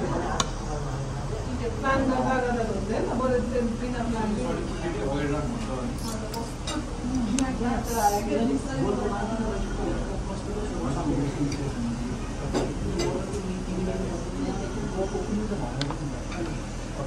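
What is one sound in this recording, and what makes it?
Metal forks scrape and clink against a plate.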